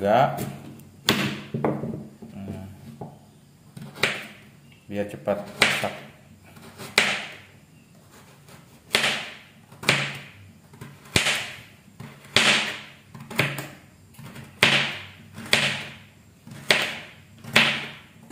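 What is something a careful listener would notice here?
A knife chops through a carrot on a cutting board with steady, regular thuds.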